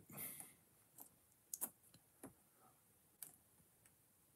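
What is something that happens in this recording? Jigsaw puzzle pieces click softly as they are pressed into place.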